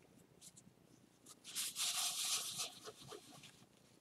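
Latex gloves rustle and crinkle.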